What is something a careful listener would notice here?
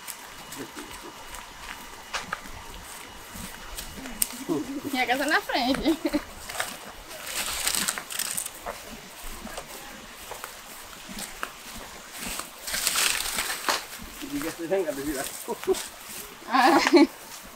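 Footsteps swish through grass outdoors.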